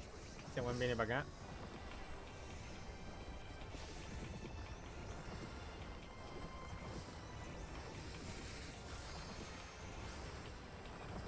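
Magic spells crackle and burst in a game battle.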